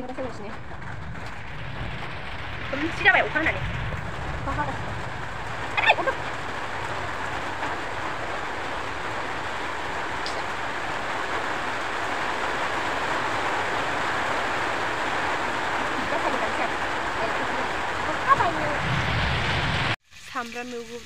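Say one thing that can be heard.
A young woman talks calmly, close by.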